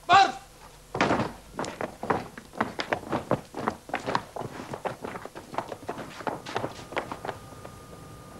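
Horse hooves clop on hard ground.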